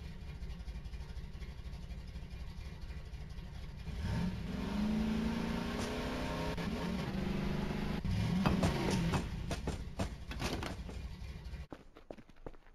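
A quad bike engine hums and revs up and down.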